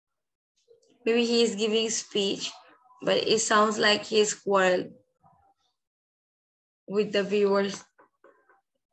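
A young girl reads aloud clearly over an online call, in short phrases with pauses.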